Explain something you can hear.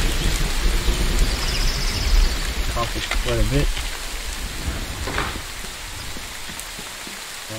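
Sea waves wash against a shore nearby.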